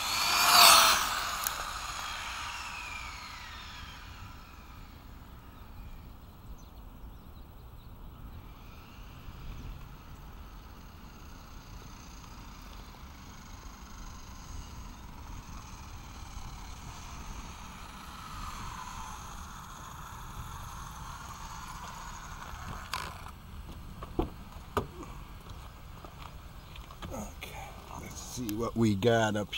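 Small plastic tyres roll and hiss over rough asphalt.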